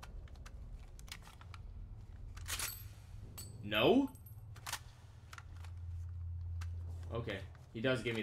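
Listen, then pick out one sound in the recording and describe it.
Metal parts of a pistol click and clatter as it is handled.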